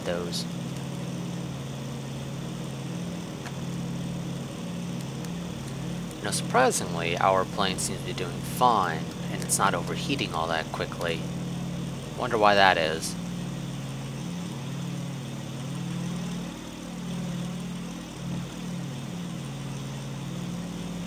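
Propeller engines drone steadily.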